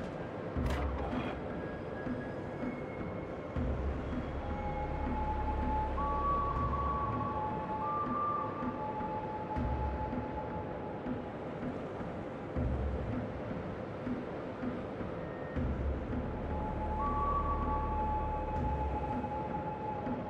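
Water rushes steadily along a ship's hull.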